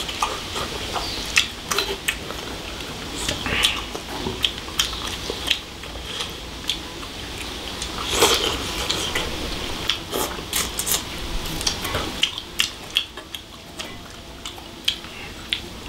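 Two men slurp and chew food close by.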